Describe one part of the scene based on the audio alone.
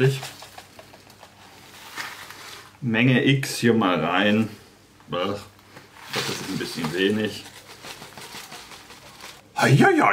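Powder pours from a packet into a cup.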